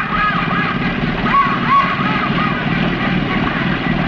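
A car splashes through a shallow pond.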